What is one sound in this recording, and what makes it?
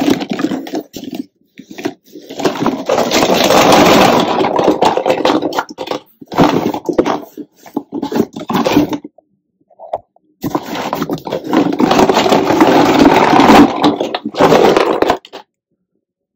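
Small plastic bottles rattle and clatter as they tumble out of a box.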